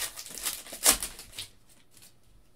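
Plastic card wrappers rustle and crinkle in hands.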